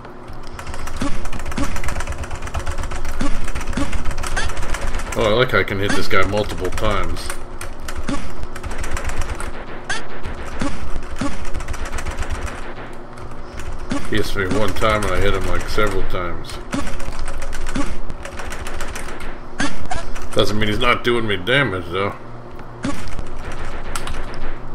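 Upbeat electronic game music plays steadily.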